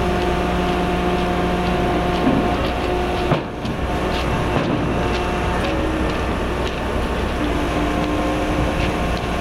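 Metal parts clank and knock now and then.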